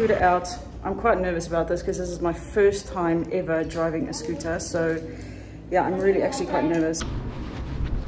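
A young woman talks calmly close by.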